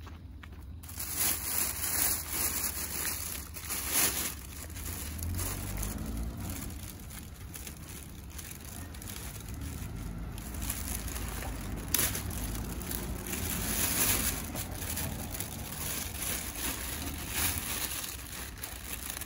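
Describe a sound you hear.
Dry plant stems rustle and snap.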